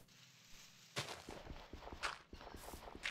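Dirt crunches as it is dug out in quick strokes.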